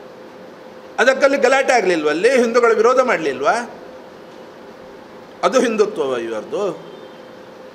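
A middle-aged man speaks calmly into microphones, with pauses.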